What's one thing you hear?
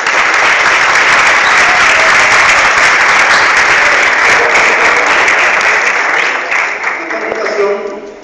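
An audience claps loudly in an echoing hall.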